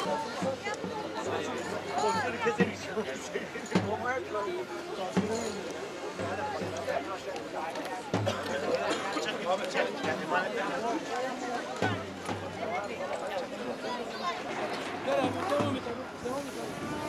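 A crowd of fans chants and cheers outdoors.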